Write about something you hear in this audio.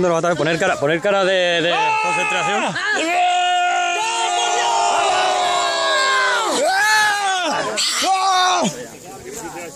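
A crowd of young men shouts and chants loudly close by.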